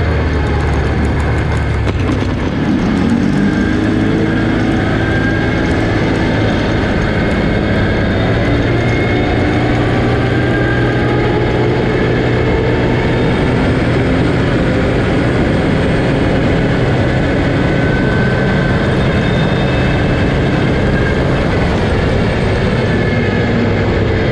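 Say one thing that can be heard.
A quad bike engine drones close by throughout.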